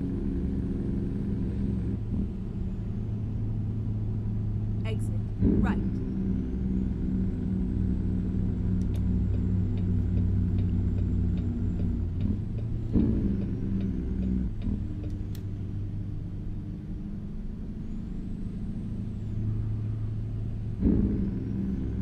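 A truck engine drones steadily as the truck drives along.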